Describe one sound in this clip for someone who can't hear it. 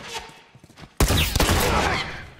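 Gunfire cracks in a rapid burst.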